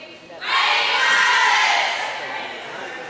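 A group of young women shout a team cheer together.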